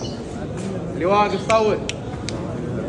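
A man calls out loudly nearby.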